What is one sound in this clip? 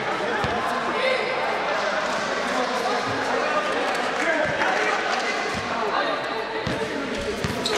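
A basketball bounces on a hard court with an echo.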